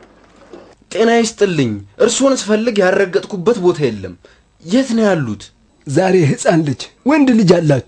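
A middle-aged man calls out a loud, cheerful greeting.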